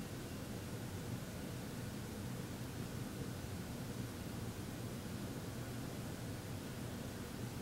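A man hums a low, steady tone.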